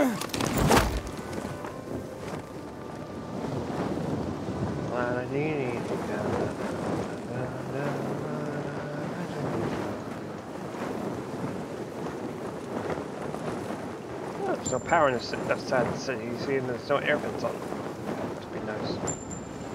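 Wind rushes past steadily during a glide.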